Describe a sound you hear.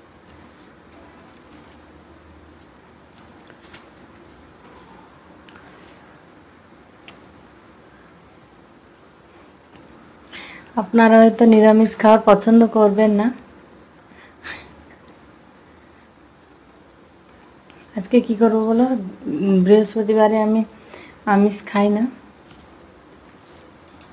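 Fingers softly squish and mix rice on a plate.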